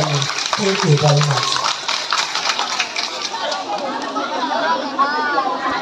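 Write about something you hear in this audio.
A crowd chatters nearby.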